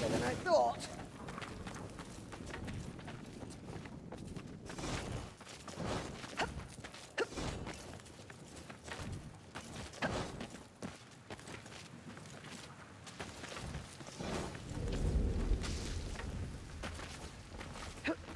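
Footsteps tread on rocky ground.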